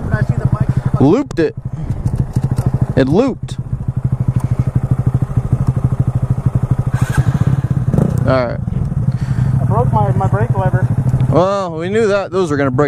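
A motorcycle engine revs up and down in short bursts.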